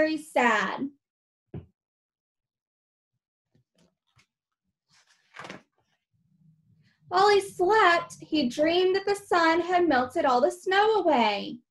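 A young woman reads aloud with animation, close by.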